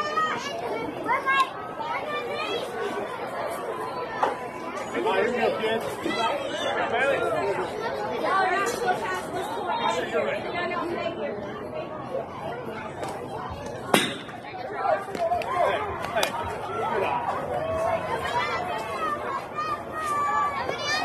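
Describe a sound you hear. Spectators chatter and call out nearby outdoors.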